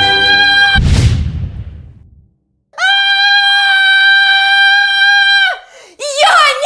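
A young woman wails and cries loudly.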